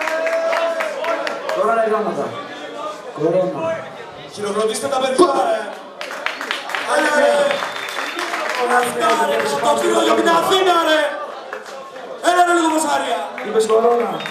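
A young man raps rapidly into a microphone over loudspeakers in a large echoing hall.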